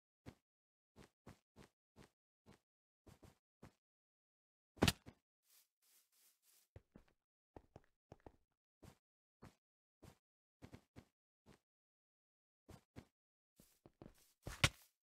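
Footsteps tap softly on blocks.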